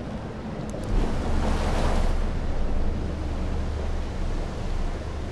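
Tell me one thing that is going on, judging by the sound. A raft's engine hums low and steady as it moves.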